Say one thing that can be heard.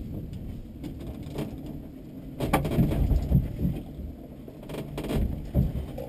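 Tyres crunch slowly over rock.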